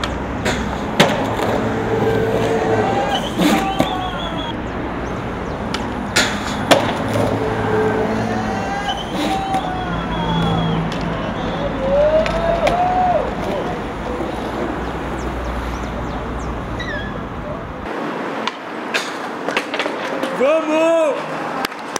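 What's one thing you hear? A skateboard deck snaps and clacks on landing.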